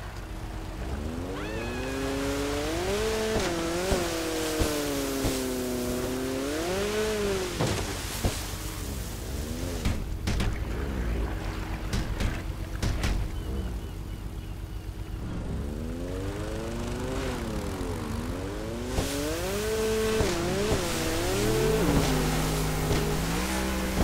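A jet ski engine whines and revs up and down.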